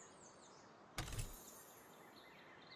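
A magical blast bursts with a sudden loud whoosh.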